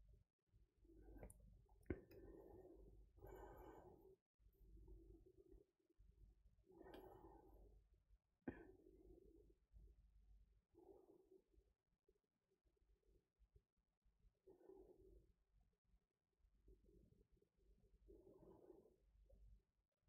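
A young woman speaks softly and briefly, close to a microphone.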